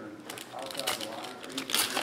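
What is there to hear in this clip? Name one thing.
Stacks of cards tap and shuffle together.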